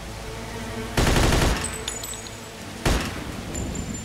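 A rifle fires loud gunshots.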